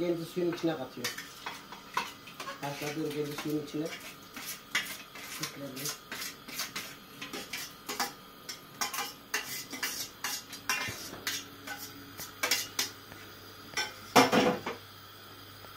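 A spoon scrapes and clatters against a metal pot.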